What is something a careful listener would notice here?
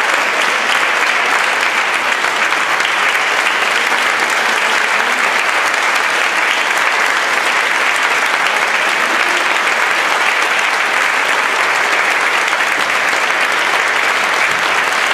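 A large audience applauds steadily in an echoing hall.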